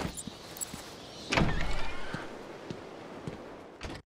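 A heavy door creaks open.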